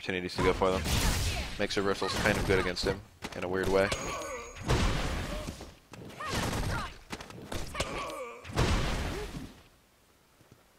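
A man's voice grunts and roars.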